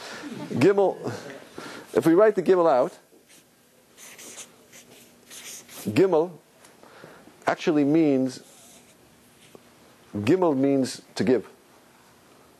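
A man speaks calmly in a pausing, lecturing manner in a room with some echo.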